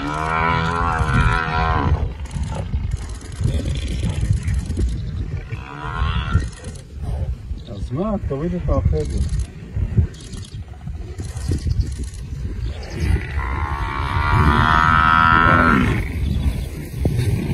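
Lions growl and snarl.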